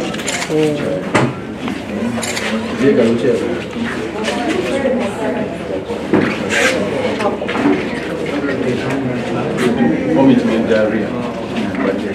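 A woman answers quietly nearby.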